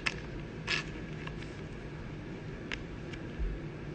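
A card slides into a plastic sleeve.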